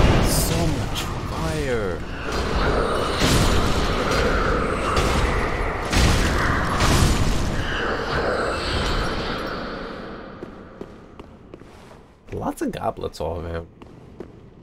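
Blades slash and strike with heavy metallic hits.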